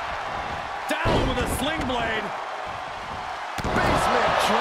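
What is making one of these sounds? A heavy body thuds onto a wrestling ring mat.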